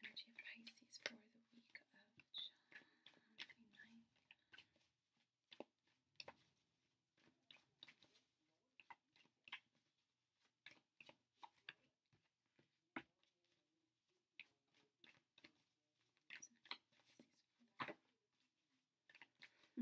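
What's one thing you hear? A plastic wrapper crinkles and rustles in hands.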